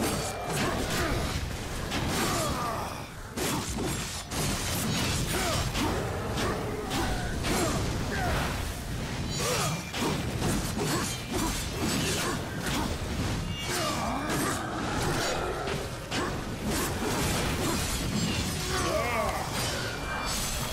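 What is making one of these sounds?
Blades clang and slash in a fight.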